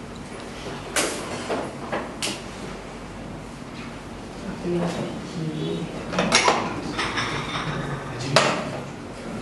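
Dishes and spoons clink on a table.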